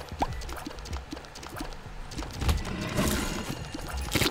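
Small shots pop and splash repeatedly.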